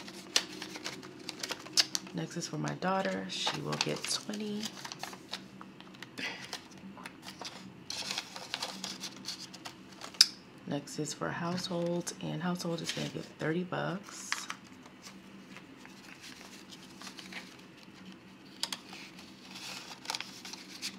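Plastic sleeves crinkle as they are opened and filled.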